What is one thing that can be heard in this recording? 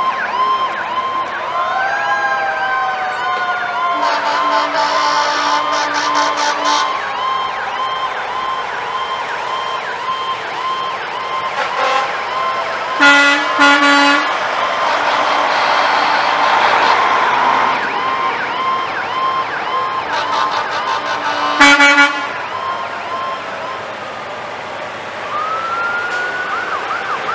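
Heavy trucks rumble slowly past, one after another.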